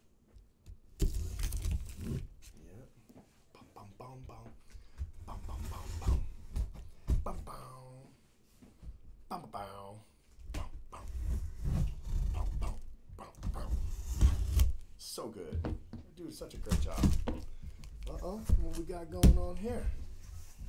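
A cardboard box thumps and scrapes as it is handled.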